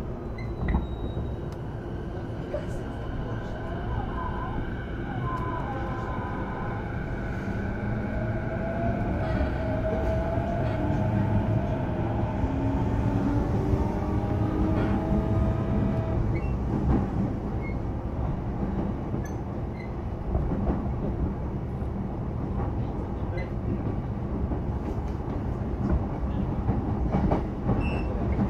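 An electric train rumbles steadily along the tracks.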